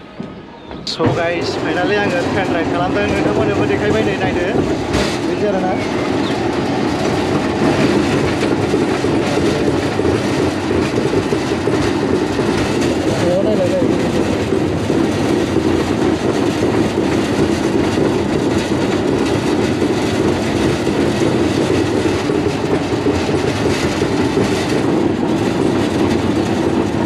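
A roller coaster car rattles and rumbles loudly along its track.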